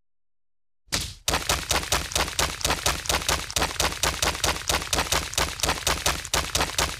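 Bricks clatter and crash in a rapid, steady stream.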